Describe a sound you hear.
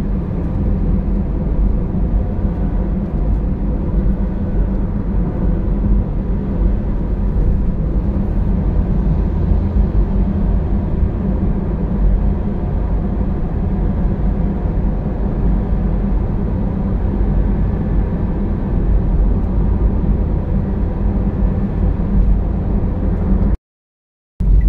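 A steady low road rumble fills a car's cabin as it drives on a highway.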